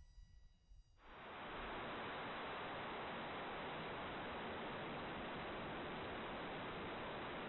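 Loud radio static hisses without a break.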